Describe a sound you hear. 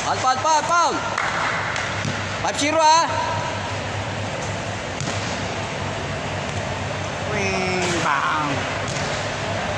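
Young men shout and call out in a large echoing hall.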